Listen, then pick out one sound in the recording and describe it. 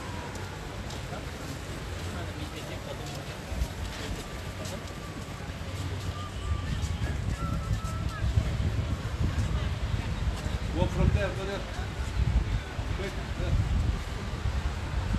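Wind blows outdoors, rumbling low against the microphone.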